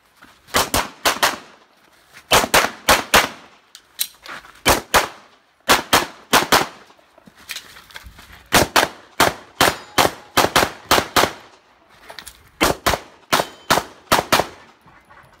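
A 9mm pistol fires rapid strings of shots outdoors.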